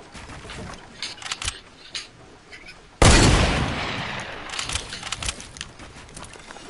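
Quick clicking and thudding sounds of building pieces snap into place in a video game.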